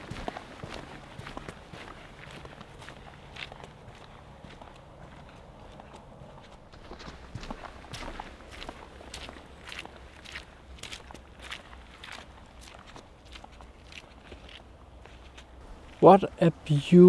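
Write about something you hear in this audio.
Footsteps crunch steadily on a gravel path.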